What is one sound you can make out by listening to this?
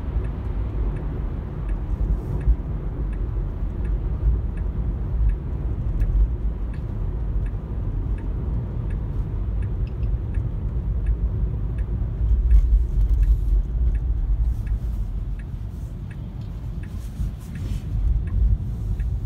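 A car's engine and tyres rumble steadily on the road from inside the car.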